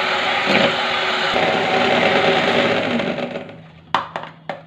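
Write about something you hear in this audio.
An electric hand mixer whirs loudly.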